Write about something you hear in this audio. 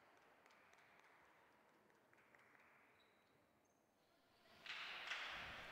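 A volleyball is struck with a hand.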